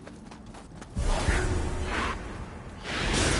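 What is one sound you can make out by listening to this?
A blade swings and strikes with a heavy impact.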